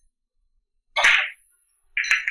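A cue tip strikes a billiard ball with a sharp tap.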